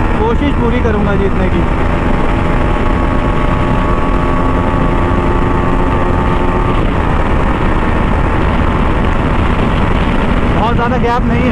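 A motorcycle engine roars steadily at high speed.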